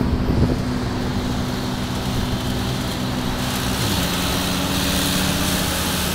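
A diesel city bus drives closer.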